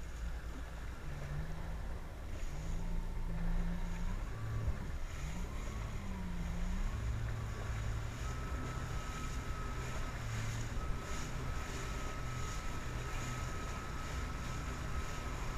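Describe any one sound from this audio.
Water splashes and rushes against a jet ski's hull.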